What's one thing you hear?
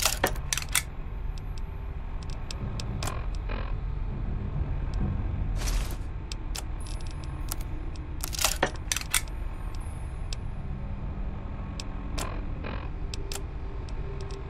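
Short electronic clicks and beeps sound as menu items are selected.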